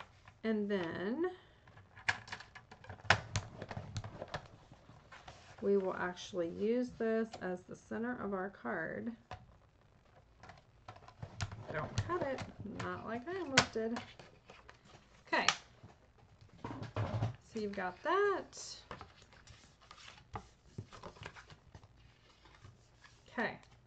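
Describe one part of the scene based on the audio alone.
Paper rustles and taps on a table.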